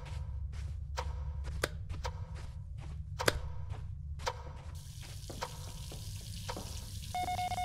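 Footsteps thud across a wooden floor.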